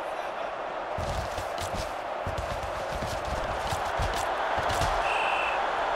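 Football players collide and tackle with dull thuds.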